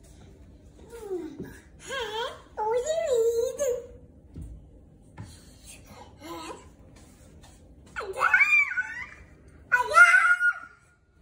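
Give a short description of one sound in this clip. A young child chatters and squeals excitedly close by.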